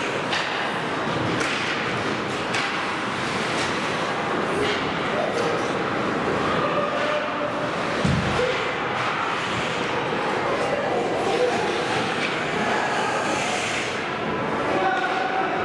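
Ice skates scrape and hiss across the ice in a large echoing hall.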